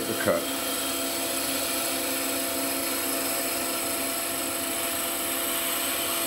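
A chisel scrapes against spinning wood.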